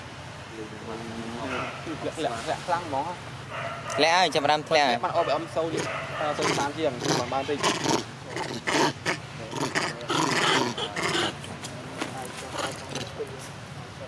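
Monkeys squeal and chatter close by.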